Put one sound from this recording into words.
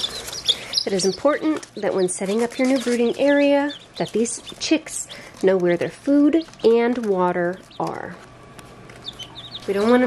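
Chicks peep softly.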